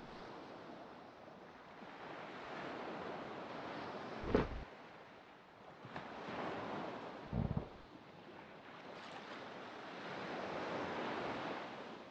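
Ocean waves wash and splash steadily around a small wooden raft.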